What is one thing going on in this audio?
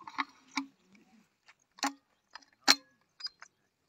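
A break-action grenade launcher clicks as it is opened and closed.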